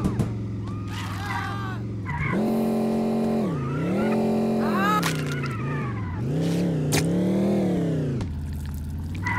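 A car engine revs up and down in rising and falling whines.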